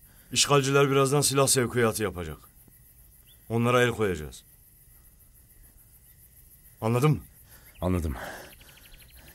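A middle-aged man speaks close by with strong feeling, in short bursts.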